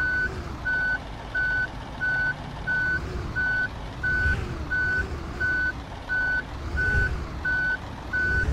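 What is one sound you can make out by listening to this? A bus engine rumbles low and steadily.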